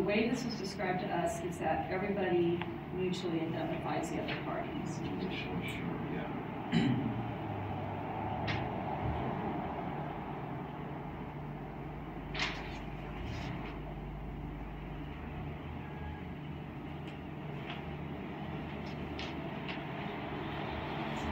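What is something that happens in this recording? Paper pages rustle as they turn.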